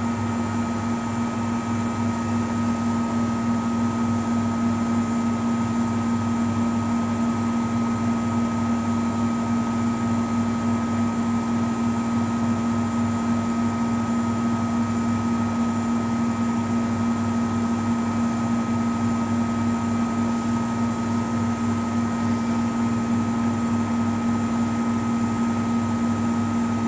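A front-loading washing machine hums with a steady motor drone as the drum turns.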